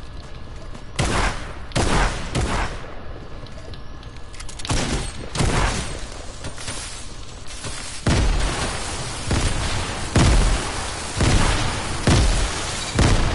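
Loud gunshots ring out in sharp, repeated bursts.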